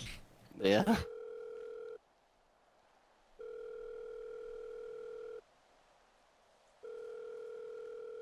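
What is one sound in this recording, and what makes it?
A phone rings with a repeating electronic tone.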